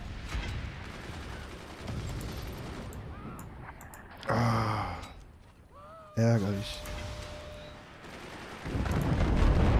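Shells explode with heavy blasts.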